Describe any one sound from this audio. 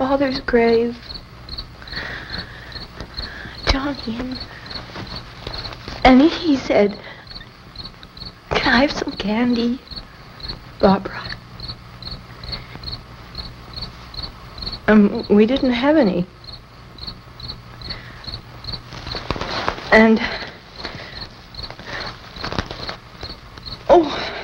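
A young woman speaks in short, hesitant bursts with long pauses, close by.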